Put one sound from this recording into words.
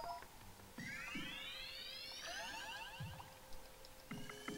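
A bright rising sparkle jingle plays as health is restored.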